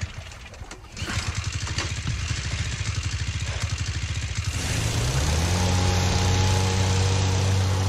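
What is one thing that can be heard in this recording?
A boat engine chugs and rumbles.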